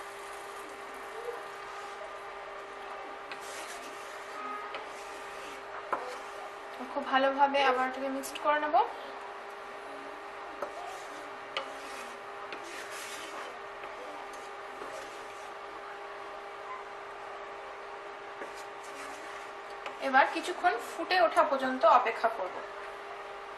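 A wooden spoon stirs a thick sauce in a pan, scraping softly.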